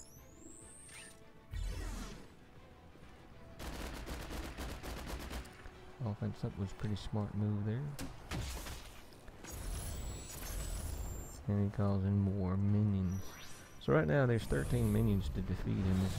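Gunfire and energy blasts crackle in a battle.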